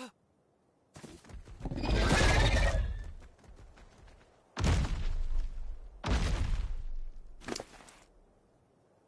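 A large creature growls and roars loudly.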